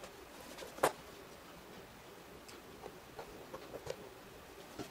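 A small metal tool scrapes and clicks against a shoe sole.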